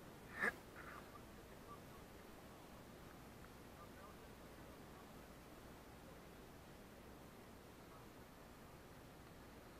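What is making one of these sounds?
Small waves lap gently against rocks outdoors.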